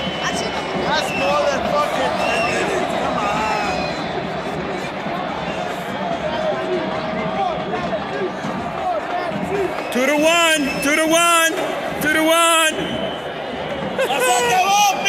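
A huge stadium crowd roars and murmurs steadily in a large open space.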